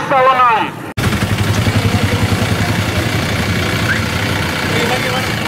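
A vehicle engine idles with a low rumble.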